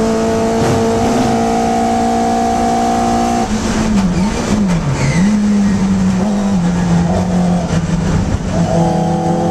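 A racing Hillman Imp engine screams at high revs, heard from inside the cabin.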